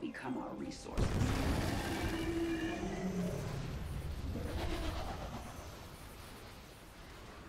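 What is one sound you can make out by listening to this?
Explosions rumble and boom in a loud battle.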